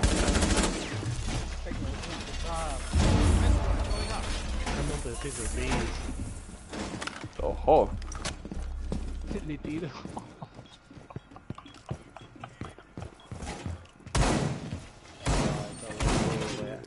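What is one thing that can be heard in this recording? Footsteps thud quickly up wooden stairs and across a floor.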